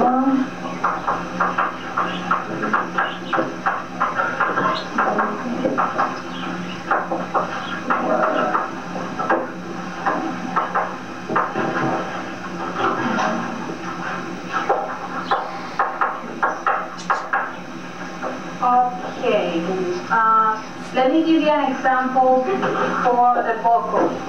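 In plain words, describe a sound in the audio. A woman speaks with animation, heard through a camcorder microphone.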